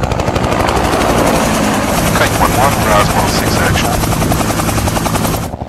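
Helicopter rotors thump loudly and rapidly overhead.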